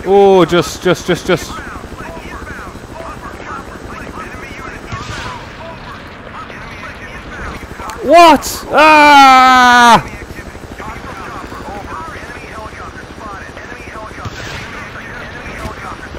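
A helicopter's rotor thrums steadily.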